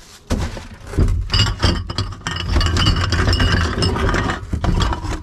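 A foot stomps down on cans and bottles, crunching them.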